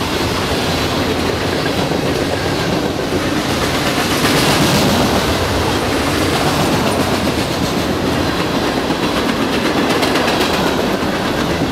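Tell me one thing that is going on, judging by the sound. Steel wheels clatter rhythmically over rail joints.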